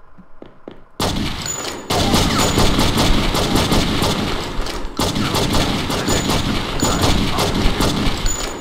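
Rapid gunshots fire in quick bursts.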